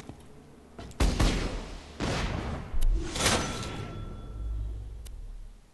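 Gunfire and explosions burst loudly.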